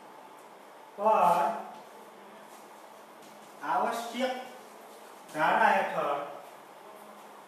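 A man speaks in short phrases, close by.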